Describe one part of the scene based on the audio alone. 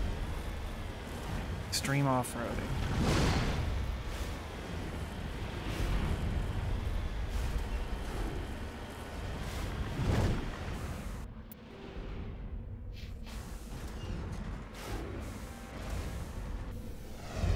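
A vehicle engine rumbles as it drives over rough ground.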